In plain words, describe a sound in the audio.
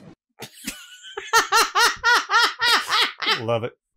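A woman laughs hard in bursts close to a microphone.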